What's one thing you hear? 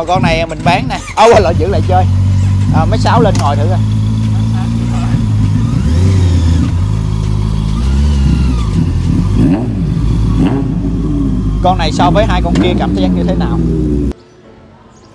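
A motorcycle engine idles loudly and revs up and down close by.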